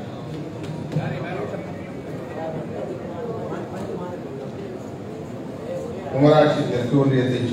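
A middle-aged man reads aloud into a microphone in an echoing hall.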